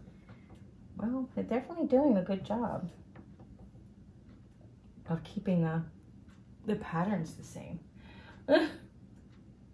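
An older woman talks calmly close by.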